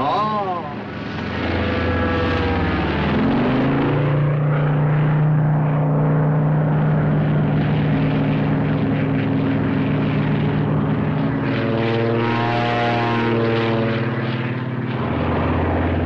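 A plane's engine roars and whines as it dives past.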